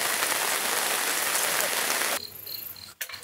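Rainwater pours off the edge of a tarp and splashes steadily.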